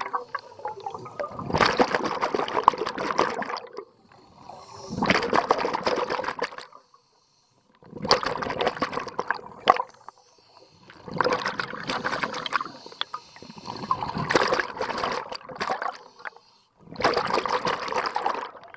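A diver's breath bursts out through a regulator underwater in loud, bubbling rushes every few seconds.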